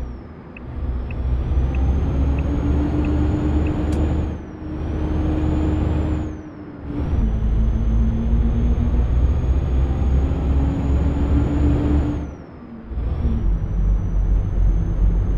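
A truck engine rumbles deeply, rising and falling as it changes gear.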